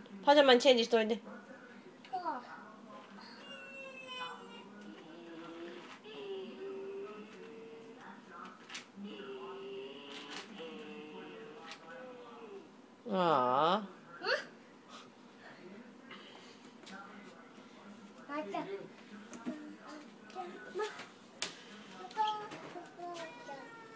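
A young boy talks and chatters nearby.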